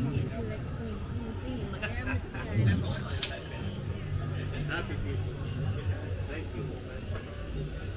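Diners chat quietly at tables outdoors.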